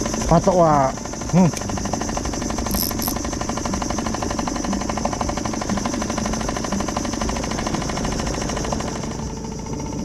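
A fishing reel whirs and clicks as its line is wound in.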